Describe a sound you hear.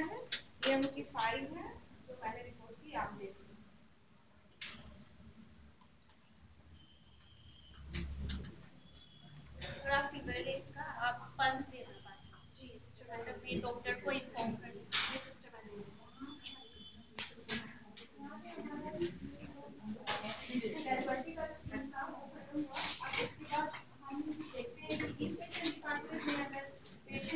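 A woman speaks clearly nearby.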